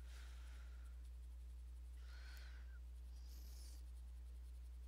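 A pencil scratches softly across paper in short strokes.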